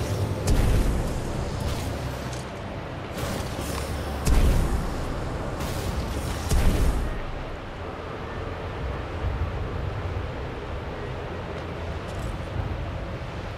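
Footsteps thump quickly against a metal wall.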